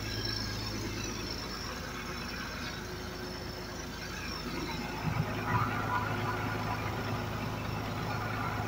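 A diesel engine idles with a steady low rumble close by.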